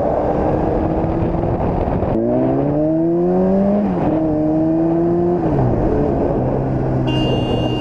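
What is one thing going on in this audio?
A motorcycle engine revs up and down through the gears.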